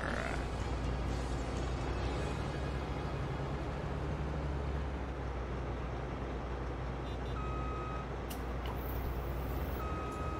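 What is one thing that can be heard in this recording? A heavy machine's engine rumbles steadily at idle.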